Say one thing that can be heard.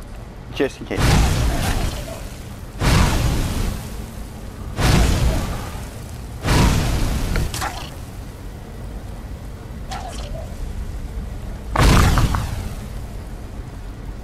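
Flames burst and roar in short loud whooshes.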